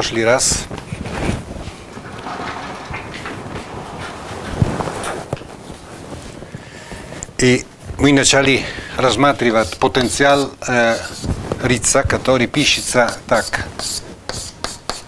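An elderly man speaks calmly in an echoing room.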